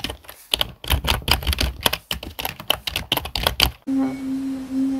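Keys clack rapidly on a keyboard as someone types fast.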